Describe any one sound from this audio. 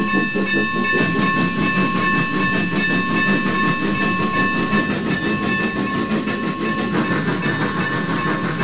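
A steam locomotive chuffs steadily.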